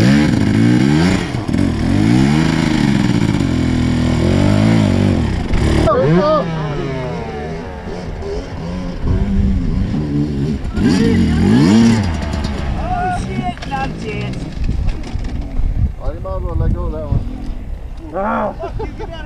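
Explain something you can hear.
A dirt bike engine revs hard nearby, rising and falling.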